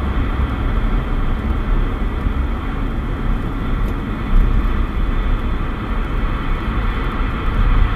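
A car's tyres rumble steadily on the road.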